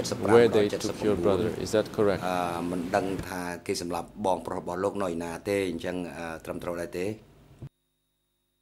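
A middle-aged man speaks formally into a microphone.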